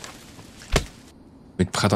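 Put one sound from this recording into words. An axe chops into a tree trunk with a sharp thud.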